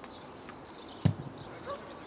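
A football is kicked hard with a dull thud.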